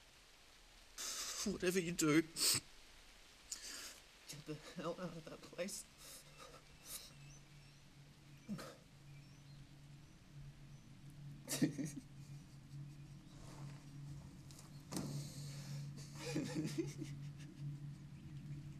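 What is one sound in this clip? A young man groans and breathes heavily up close.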